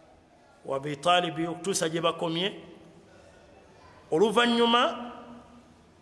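A man speaks slowly and melodically into a close microphone, in short phrases with pauses.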